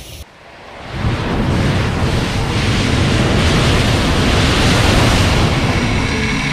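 A fireball roars loudly up close.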